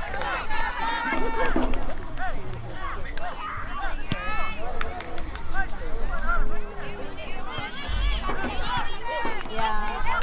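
Girls and young women shout and call out across an open field.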